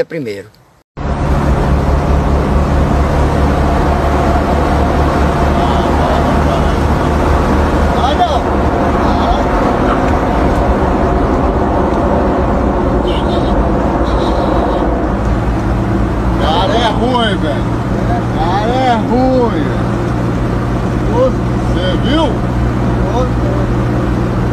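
A truck engine drones steadily while driving on a road.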